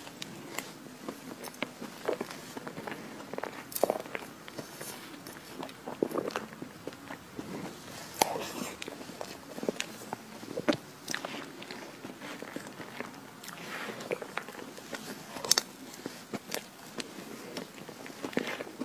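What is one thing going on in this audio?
A young woman chews soft chocolate cake close to a microphone.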